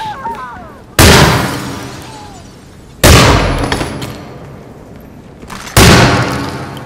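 Gunshots ring out loudly, echoing down a hall.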